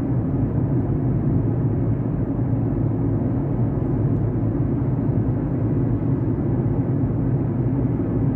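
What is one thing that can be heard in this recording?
A car engine hums steadily with low road rumble from inside the cabin.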